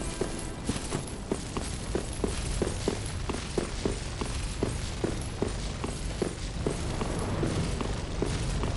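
Footsteps clatter quickly on stone stairs.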